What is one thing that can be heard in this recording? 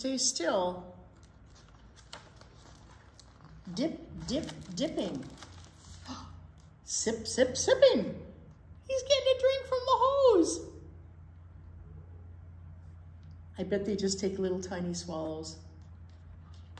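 An elderly woman reads aloud expressively, close by.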